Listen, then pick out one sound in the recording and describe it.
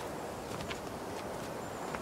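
Several people walk slowly on a dirt path.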